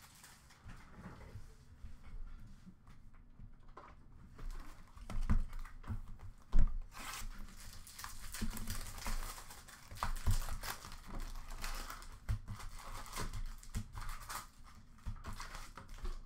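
Cards and packs knock and clatter against a box.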